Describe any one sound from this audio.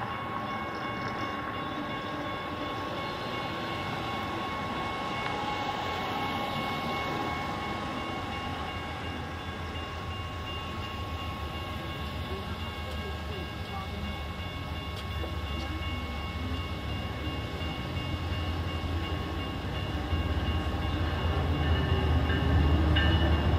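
A railway crossing bell rings steadily.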